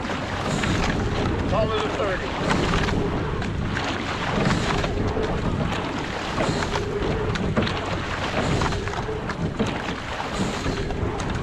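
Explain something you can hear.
Oars splash and dip into water in a steady rhythm.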